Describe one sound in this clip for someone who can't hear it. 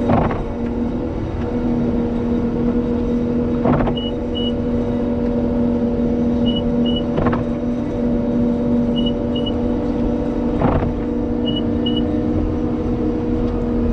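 A heavy engine hums steadily up close.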